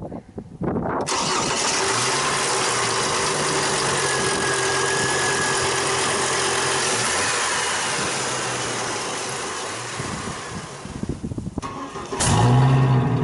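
A truck engine idles with a steady hum.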